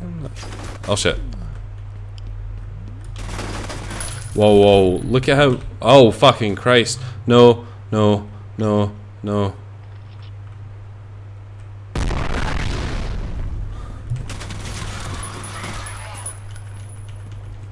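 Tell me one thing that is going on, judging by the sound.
A gun fires in short bursts, with echoing shots.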